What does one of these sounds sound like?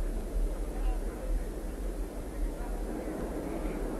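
A crowd murmurs softly in an open stadium.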